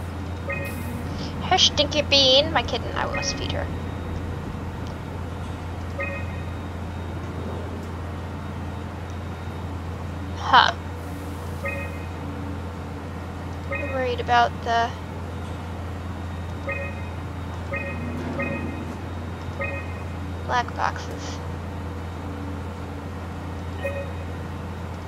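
Short electronic beeps sound now and then.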